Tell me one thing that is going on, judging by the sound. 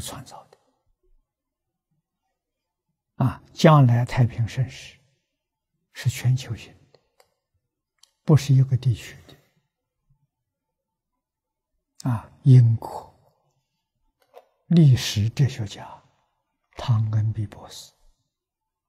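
An elderly man speaks slowly and calmly into a close microphone, in short phrases with long pauses.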